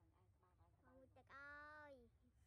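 A young boy laughs happily close by.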